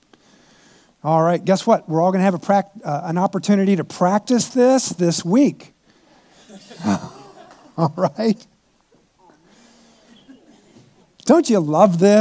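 An older man speaks with animation through a microphone in a large room.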